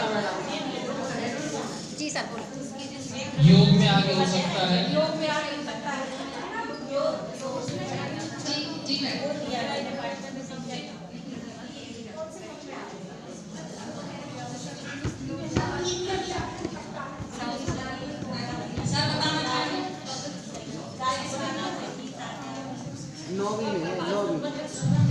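A woman speaks with animation into a microphone in an echoing room.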